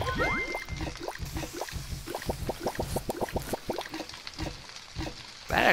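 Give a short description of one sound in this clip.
Food clatters and tumbles in a pan in rapid knocks.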